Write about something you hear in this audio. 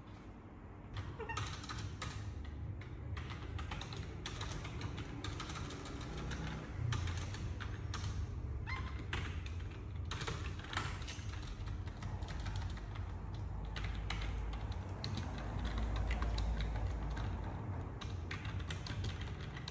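Computer keyboard keys click rapidly as someone types.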